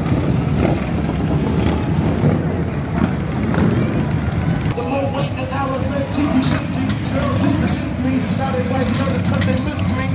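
Motorcycle engines rumble deeply as bikes ride past.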